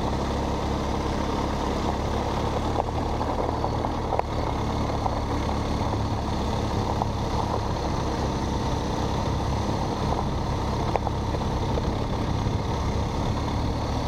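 Tyres crunch steadily over loose gravel.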